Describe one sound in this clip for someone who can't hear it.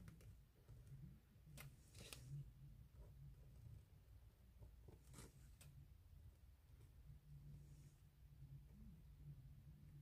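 A marker pen squeaks and scratches on a hard surface.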